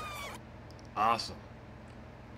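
A man speaks briefly and close into a microphone.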